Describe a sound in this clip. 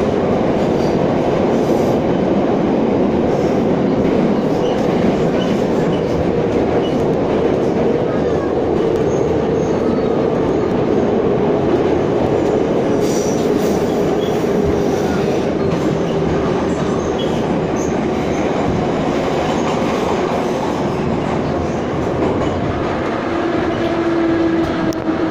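A metro train rumbles and roars loudly along the tracks.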